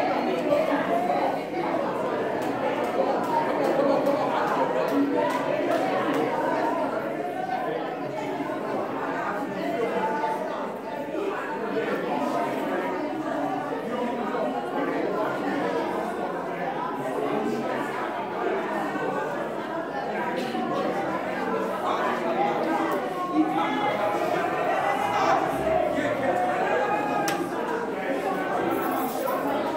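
A crowd of men and women talks, prays and calls out loudly in a large room.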